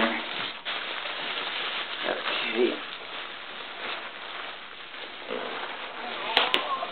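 Bubble wrap crinkles and rustles as hands push into a box.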